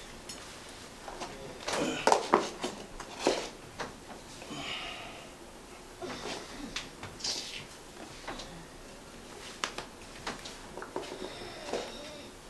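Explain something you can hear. A man shuffles and creaks on a bed.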